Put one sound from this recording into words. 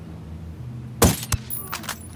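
A suppressed rifle fires a muffled shot.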